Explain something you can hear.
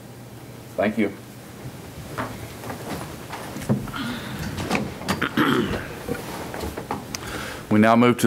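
A woman speaks briefly into a microphone.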